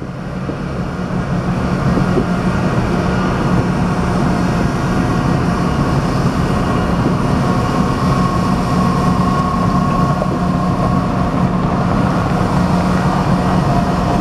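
A passenger train rolls past close by, its wheels clattering steadily on the rails.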